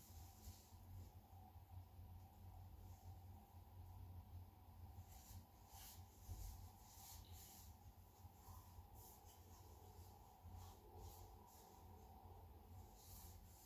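A wooden speaker cabinet is handled and turned, with soft knocks and rubbing.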